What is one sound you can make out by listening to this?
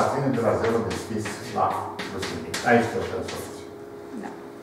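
An older man speaks calmly and clearly, as if lecturing, close by.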